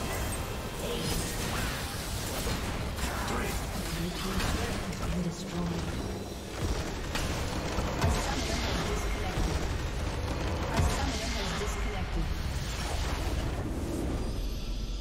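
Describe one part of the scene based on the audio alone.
Game spell effects crackle and blast in a busy fight.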